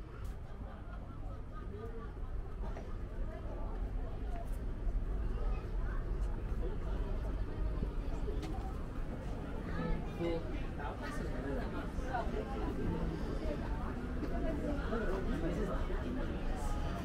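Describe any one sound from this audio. Many people chatter in a lively crowd nearby, growing louder.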